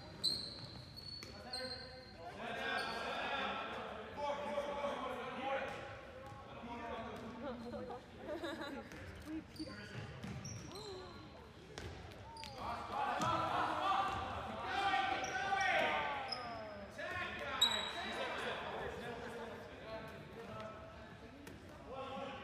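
A ball thuds against the floor and hands.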